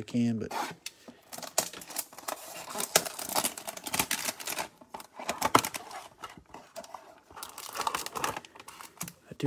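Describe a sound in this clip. Plastic wrapping crinkles and rustles as it is torn open.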